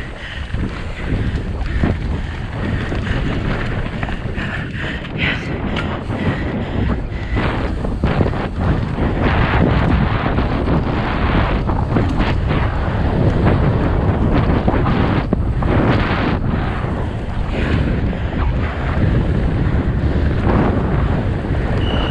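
Bicycle tyres rattle and crunch over a rough dirt trail.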